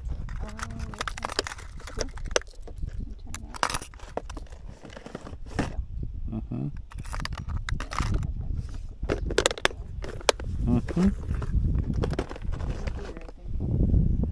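Plastic lures rattle and click in a tackle box.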